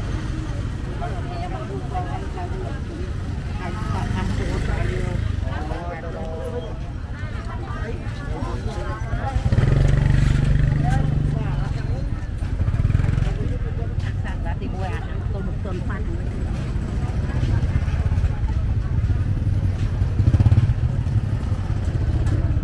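Motorbike engines rumble past close by.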